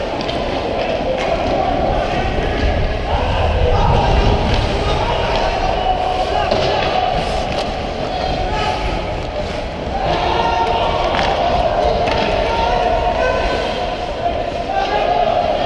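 Ice skates scrape and swish across the ice close by, in a large echoing rink.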